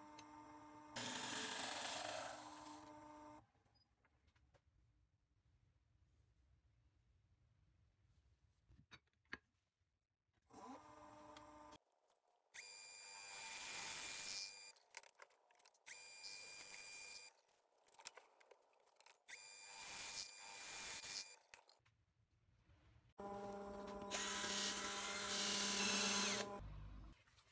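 A wood lathe hums as it spins.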